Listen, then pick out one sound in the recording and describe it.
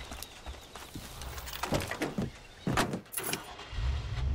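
A car door clicks open and thumps shut.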